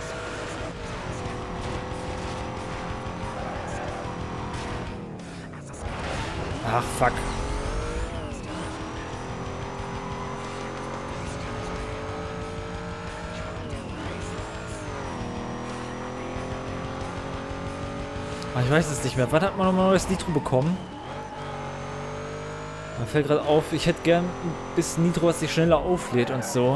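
A racing car engine roars steadily, rising in pitch as it speeds up and dropping at each gear change.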